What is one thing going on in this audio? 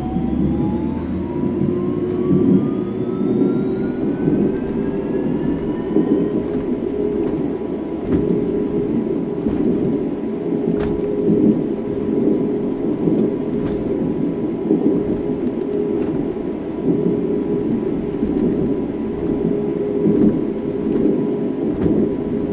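A suspended train rumbles steadily along its track.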